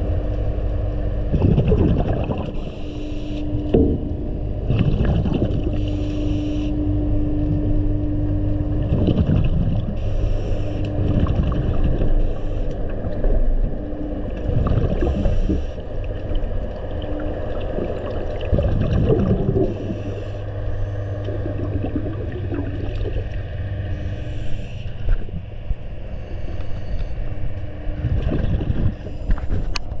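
Water rumbles and sloshes steadily, heard from underwater.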